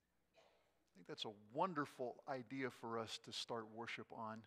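An elderly man speaks calmly into a microphone in an echoing room.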